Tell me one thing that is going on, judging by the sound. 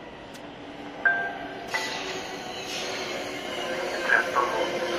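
Train brakes squeal.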